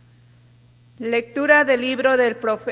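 A woman sings through a microphone in an echoing room.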